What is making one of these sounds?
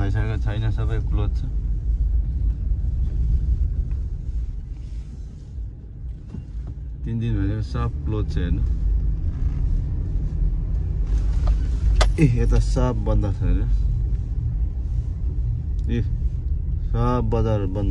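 A car engine hums low and steady as a car rolls slowly.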